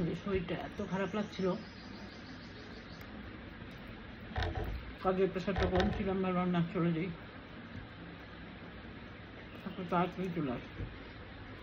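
A woman talks close by, calmly and in short bursts.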